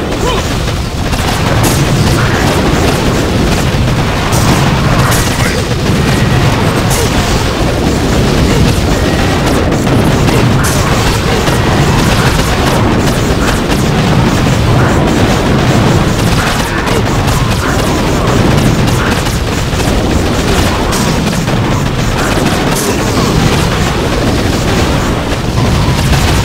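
Explosions boom and crackle again and again.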